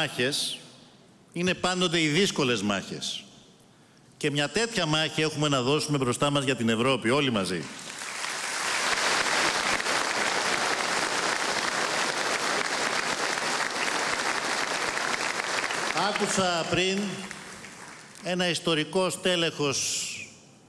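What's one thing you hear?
A middle-aged man speaks forcefully into a microphone, heard over loudspeakers in a large hall.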